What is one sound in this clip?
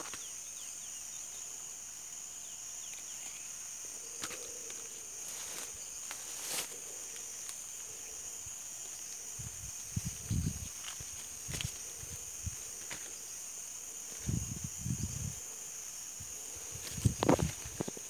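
Leaves rustle as a hand pushes through branches.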